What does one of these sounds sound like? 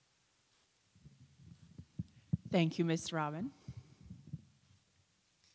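A woman speaks clearly into a microphone, her voice carried over loudspeakers.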